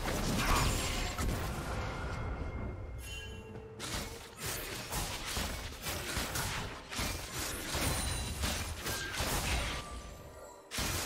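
Magic spells whoosh and crackle in a fast-paced video game battle.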